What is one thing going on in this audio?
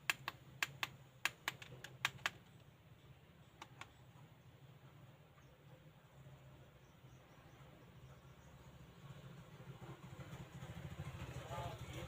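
A small motor in a handheld pen hums softly and steadily.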